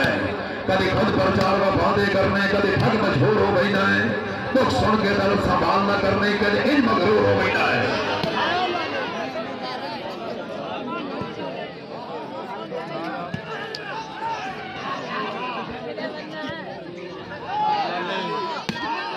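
A large outdoor crowd cheers and chatters.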